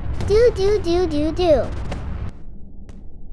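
A rocket engine roars and hisses.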